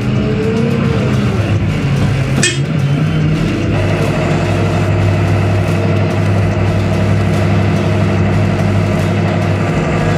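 Hydraulics whine as a loader arm moves.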